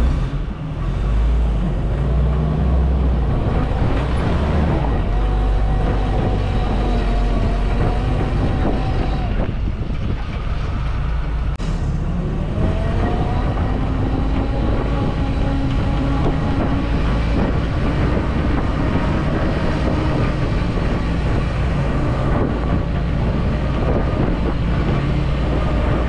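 An open off-road vehicle's engine rumbles and revs.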